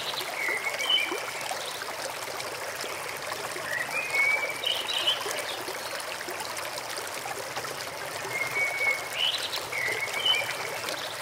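A small bird chirps and trills nearby in short bursts.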